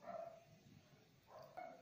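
Liquid drips from a small bottle into a glass bowl.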